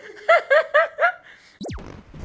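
A young woman laughs loudly close by.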